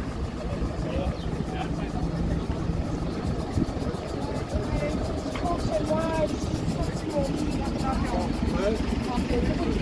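A bus engine idles with a low steady rumble.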